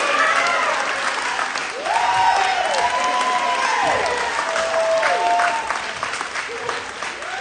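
A group of young men cheer and whoop loudly.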